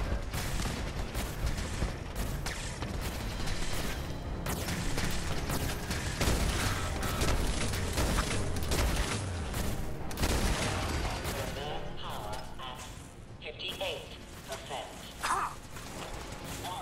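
A robot lets out short electronic bleeps.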